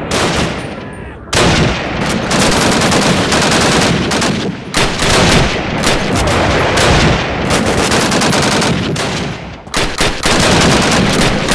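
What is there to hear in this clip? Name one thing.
Rifle shots crack loudly and boom away.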